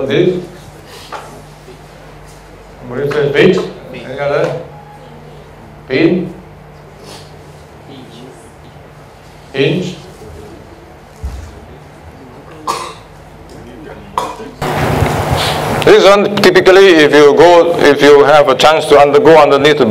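A man speaks with pauses through a microphone in a large room.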